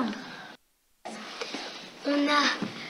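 A young girl talks with animation.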